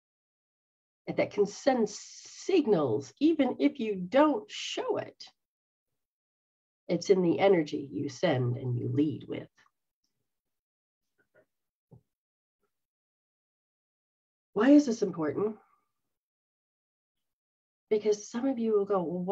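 A middle-aged woman talks with animation into a microphone, heard through an online call, pausing now and then.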